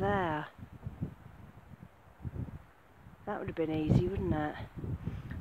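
Wind gusts across open grass outdoors.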